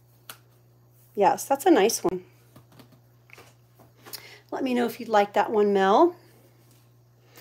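Glossy sticker books rustle and tap as they are handled.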